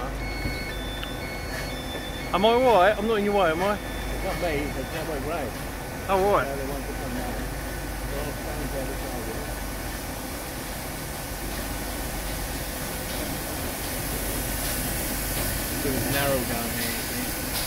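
Train wheels rumble and squeal slowly along the rails.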